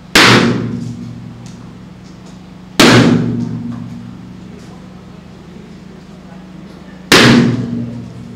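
Balloons pop loudly with a short echo.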